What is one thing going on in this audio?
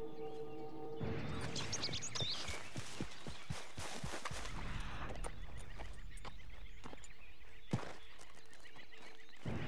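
Footsteps rustle quickly through grass and brush.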